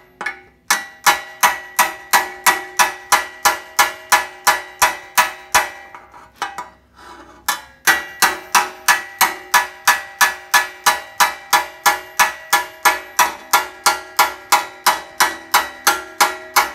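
A hammer rings on sheet steel in even blows.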